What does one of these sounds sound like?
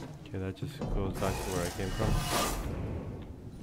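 A metal hatch hisses as it slides open.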